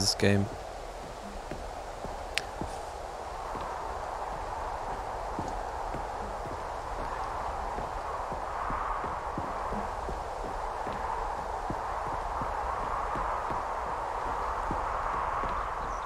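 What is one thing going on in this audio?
Footsteps thud steadily on wooden boards and stairs.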